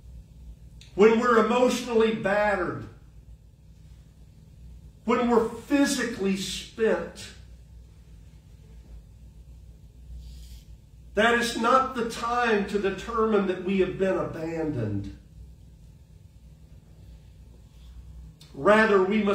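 An elderly man speaks calmly into a microphone, in short phrases with pauses, in a slightly echoing hall.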